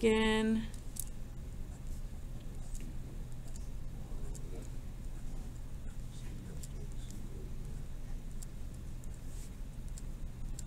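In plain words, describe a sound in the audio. A felt-tip marker taps and scratches softly on paper.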